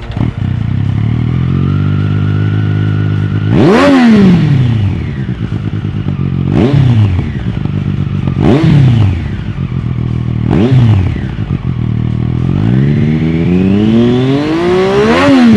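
A motorcycle engine idles with a deep, throbbing rumble.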